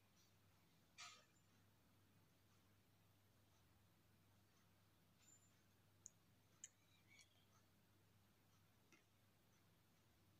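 Pieces of fish are dropped into a pot of liquid with soft splashes.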